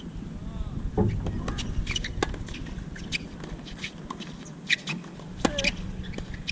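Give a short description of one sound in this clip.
A tennis ball is struck sharply with a racket, back and forth.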